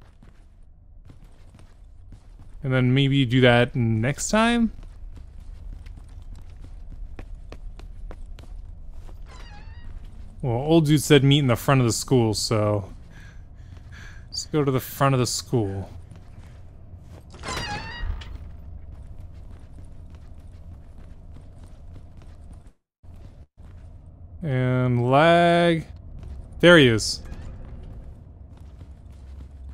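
Quick light footsteps patter on a hard floor.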